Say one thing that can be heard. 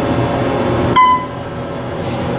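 An elevator chime rings on arrival.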